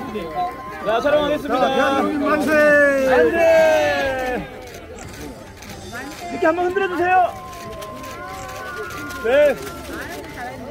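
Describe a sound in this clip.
A group of men and women shout together in loud cheers.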